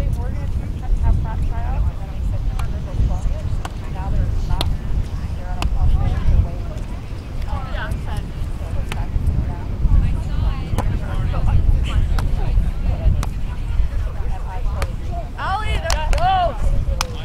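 Young women call out to each other during play.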